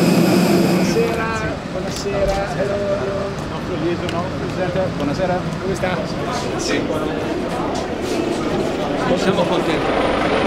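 Men talk and greet each other nearby.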